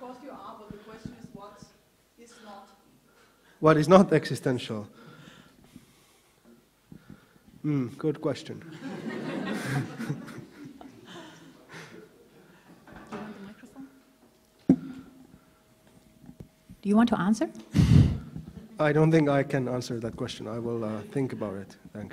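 A man speaks calmly into a microphone, with pauses, in a reverberant hall.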